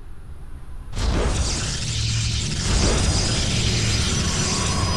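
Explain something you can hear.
A game building warps in with a loud, rushing shimmer.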